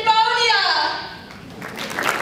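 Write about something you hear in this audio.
Two young women sing together, ending a song.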